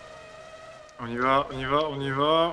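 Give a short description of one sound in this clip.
A racing car engine suddenly roars louder and warbles as the car slows down.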